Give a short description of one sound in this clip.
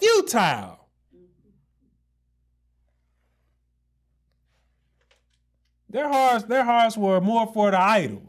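A man speaks into a microphone in a calm, preaching voice.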